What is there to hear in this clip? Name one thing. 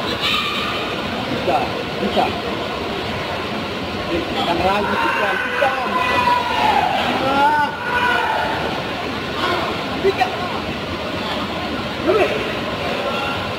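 Karate fighters shout sharply as they strike.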